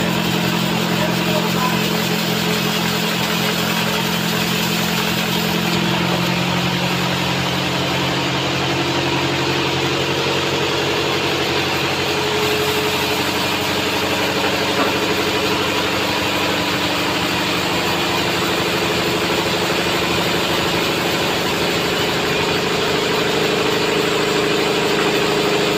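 A band saw whines loudly as it cuts through a log.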